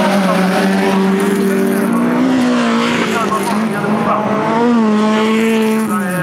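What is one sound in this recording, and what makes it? A car engine roars close by as a car slides past on dirt.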